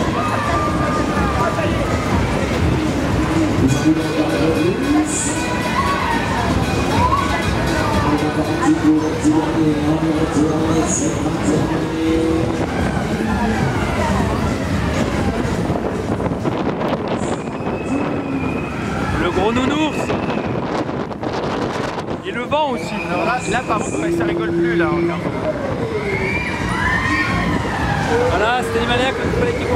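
Loud fairground music plays outdoors.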